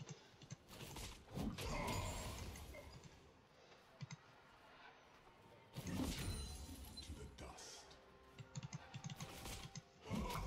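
Game sound effects of spells and blows burst and clash.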